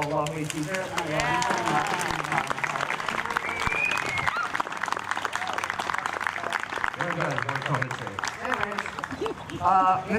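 A crowd of young people cheers and claps.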